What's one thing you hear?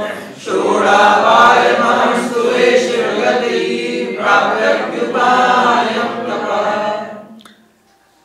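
An elderly man speaks calmly into a microphone, reading out in a melodic voice.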